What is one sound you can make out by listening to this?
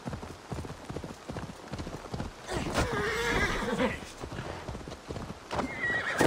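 A horse's hooves thud rhythmically on a dirt path.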